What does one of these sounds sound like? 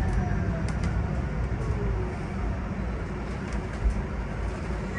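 Small rattles and clicks sound inside a moving bus.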